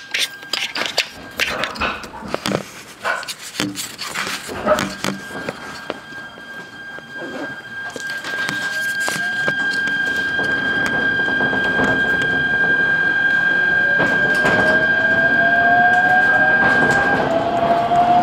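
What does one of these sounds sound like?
A train's carriage rattles and clatters as it moves.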